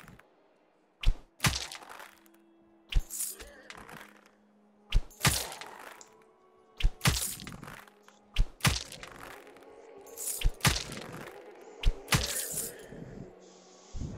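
A bow twangs sharply as arrows are loosed, again and again.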